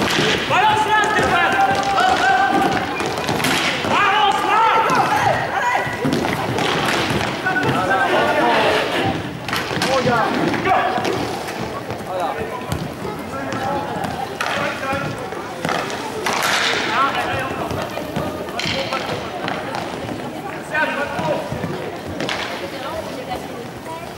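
Inline skate wheels roll and scrape across a hard floor in a large echoing hall.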